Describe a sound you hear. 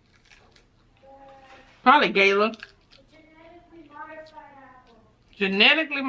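A young woman hums with pleasure while eating.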